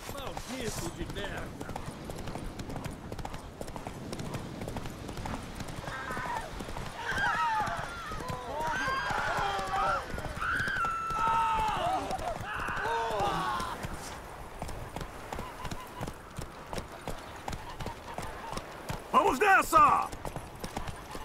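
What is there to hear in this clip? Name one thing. A horse gallops with steady hoofbeats on a dirt path.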